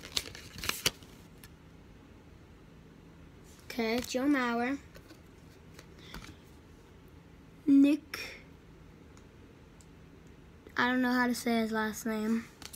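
Trading cards rustle and flick in a hand.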